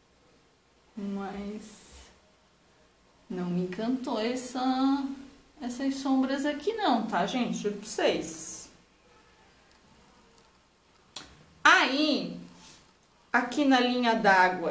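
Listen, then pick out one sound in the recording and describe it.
A woman talks calmly, close to a microphone.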